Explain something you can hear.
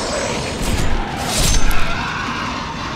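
A sword clangs against armour.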